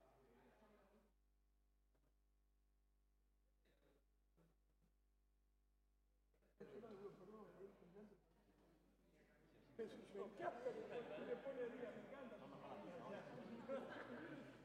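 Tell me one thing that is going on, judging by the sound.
A crowd of men and women chatter in a large room.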